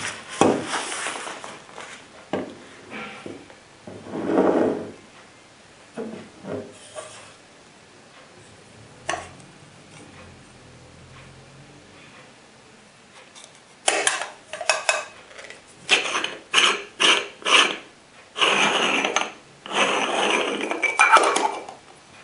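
Metal parts of a stovetop coffee pot clink and scrape as they are handled.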